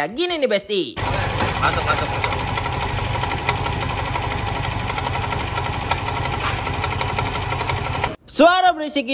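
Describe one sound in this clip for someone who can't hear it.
A scooter engine idles close by with a rough, rattling rumble.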